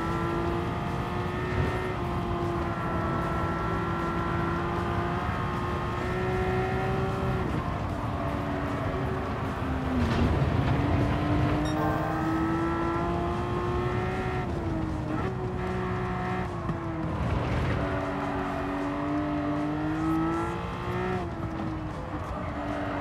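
A race car engine roars steadily, its pitch rising and falling with gear shifts.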